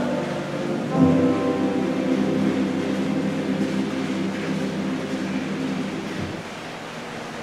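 A choir sings a hymn together in a large echoing room.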